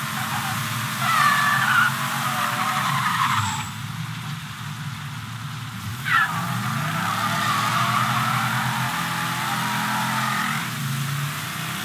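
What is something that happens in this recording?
Car tyres screech as they skid on the road.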